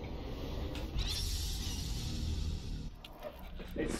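A magical sparkle shimmers and hisses.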